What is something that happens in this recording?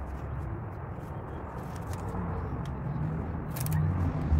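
Tape rustles as it is pulled across a plastic seat.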